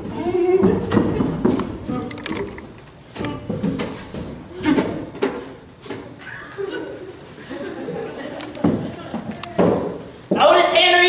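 A young man talks with animation on a stage, heard through loudspeakers in a hall.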